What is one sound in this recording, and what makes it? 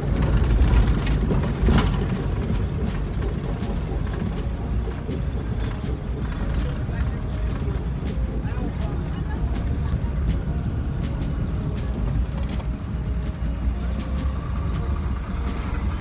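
Wind rushes past an open vehicle window.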